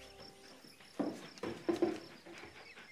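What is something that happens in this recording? A porcelain figure knocks against a hard surface.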